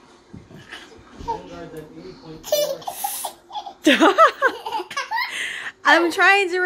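A little boy laughs and shrieks excitedly nearby.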